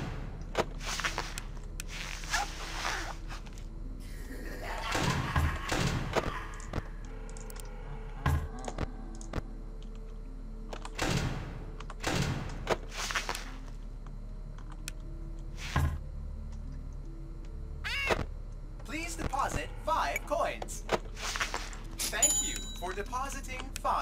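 A teenage boy talks into a headset microphone.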